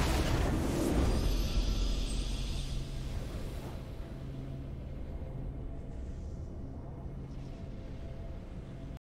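A triumphant fanfare plays and rings out.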